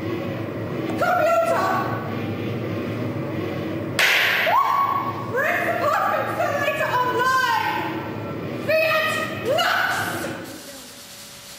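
A woman sings loudly.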